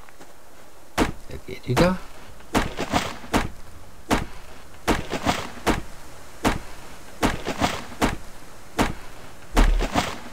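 An axe chops into a tree trunk with repeated sharp thuds.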